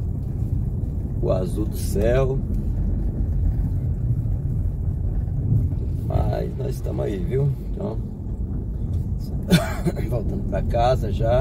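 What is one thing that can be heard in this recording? A car engine rumbles steadily as the car drives along.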